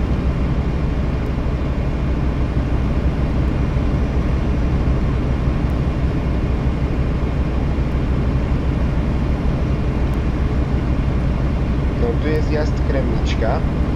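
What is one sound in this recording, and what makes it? Tyres roll on a highway.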